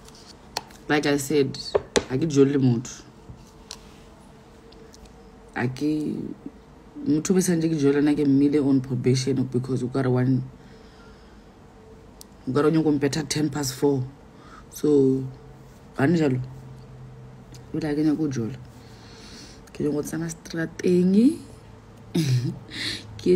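A young woman talks casually and close to a phone's microphone, with pauses.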